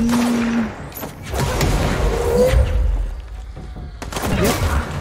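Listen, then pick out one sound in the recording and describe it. Explosions boom and debris crashes.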